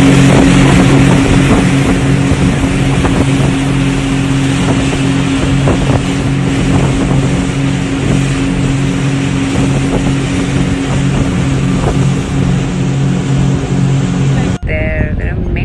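A boat engine hums steadily.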